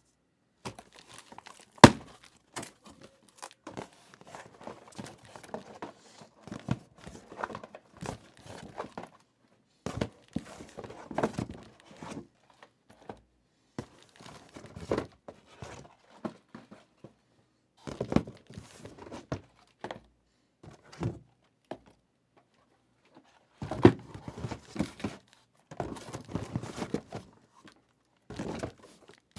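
Cardboard and plastic wrapping rustle and tap as they are handled.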